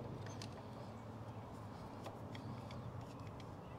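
A screwdriver turns a screw.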